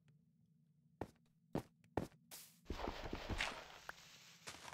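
Blocks break with short crunching knocks.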